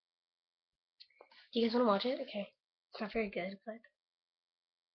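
A young girl speaks briefly, close to the microphone.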